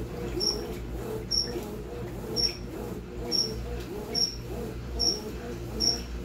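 A washing machine motor hums low and steady.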